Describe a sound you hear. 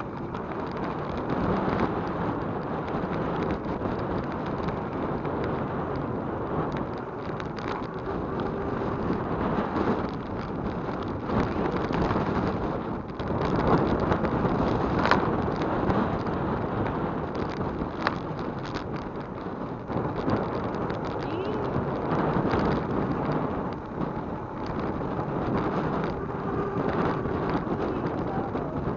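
A bicycle rattles over the road surface.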